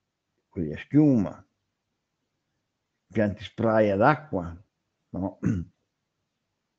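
A man speaks calmly in short phrases through a microphone, as in an online call.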